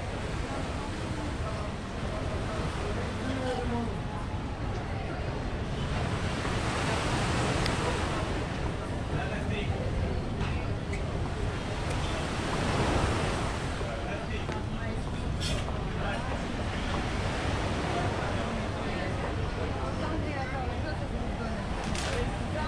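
Many people chatter in a lively crowd outdoors.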